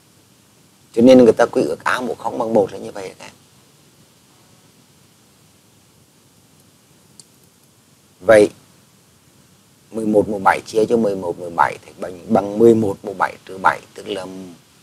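A woman explains calmly into a microphone.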